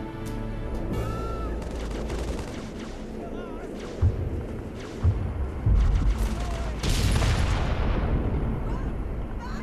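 Hovering aircraft engines hum in a video game.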